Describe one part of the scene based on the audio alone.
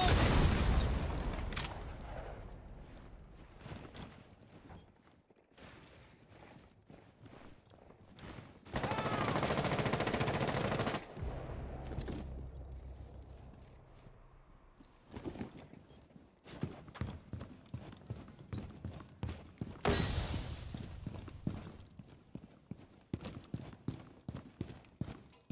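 Footsteps thud quickly on hard floors and snow.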